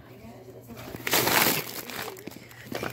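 Fabric rustles loudly against a phone microphone.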